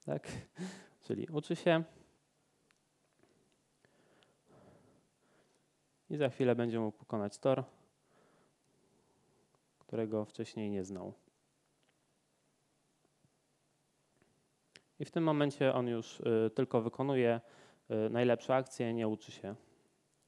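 A man talks calmly close by.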